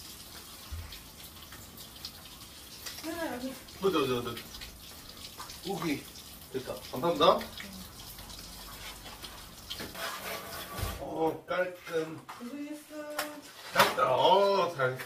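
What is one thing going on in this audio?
Dishes clink in a sink.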